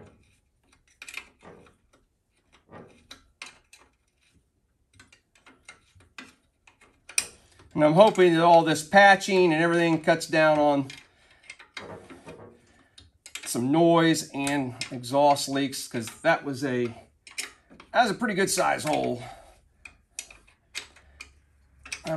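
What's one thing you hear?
Metal tools tap and click against an engine.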